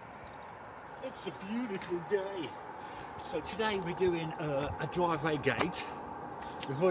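A middle-aged man talks outdoors as he walks toward the listener.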